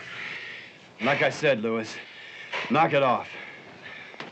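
A man pants heavily.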